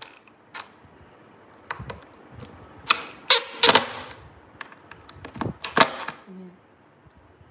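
A cordless drill whirs in short bursts, driving screws.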